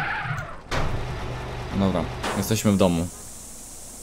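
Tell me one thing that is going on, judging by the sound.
A garage door rolls shut.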